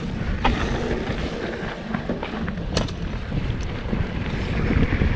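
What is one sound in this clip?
Wind rumbles loudly past a bike rider.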